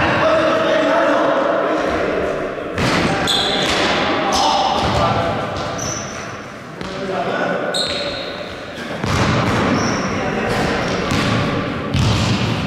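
Sneakers squeak on a hard floor in a large echoing hall.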